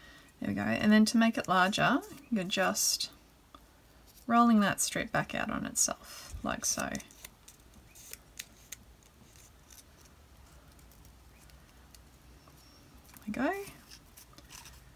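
A strip of paper rustles softly between fingers.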